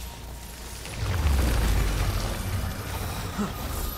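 Wooden debris clatters and breaks apart.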